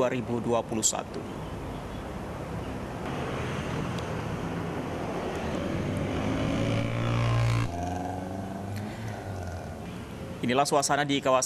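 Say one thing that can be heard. Traffic passes on a street, with motorcycle engines humming.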